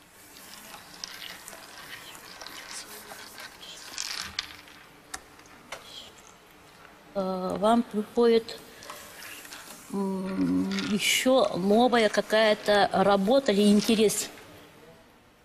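Almonds click softly as they are set down on a table one by one.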